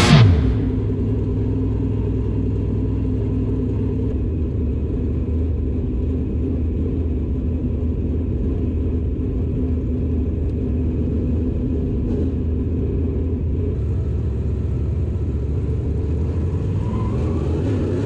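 A race car engine idles with a deep, rough rumble, close by.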